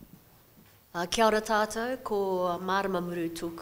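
A woman speaks with animation into a microphone.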